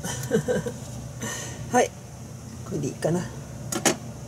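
A knife is lifted off a plastic cutting board with a light knock.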